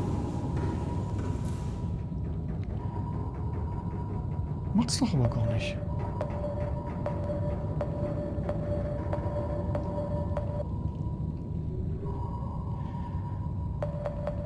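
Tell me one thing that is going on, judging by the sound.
A submarine engine hums low and steadily underwater.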